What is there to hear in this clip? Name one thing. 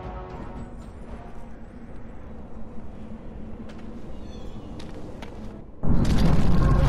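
Footsteps tread on stone ground.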